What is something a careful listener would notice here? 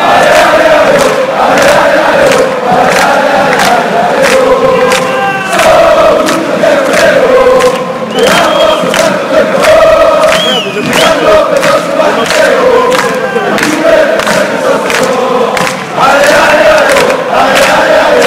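Fans clap their hands in a steady rhythm.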